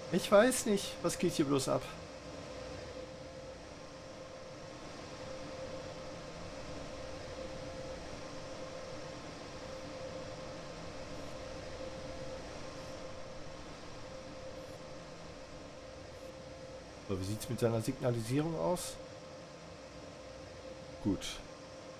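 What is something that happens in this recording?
A locomotive engine hums steadily nearby.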